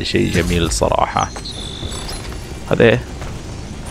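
A treasure chest creaks open with a bright chime.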